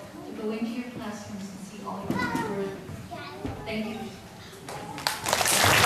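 A woman speaks warmly through a microphone in a large room.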